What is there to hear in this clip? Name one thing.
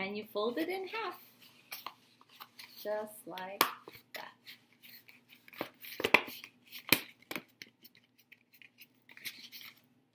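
A paper plate crinkles as it is bent and folded.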